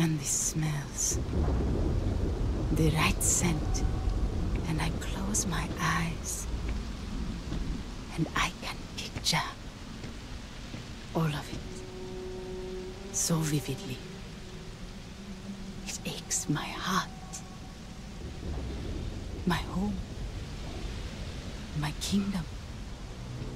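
A woman speaks calmly and wistfully, close by.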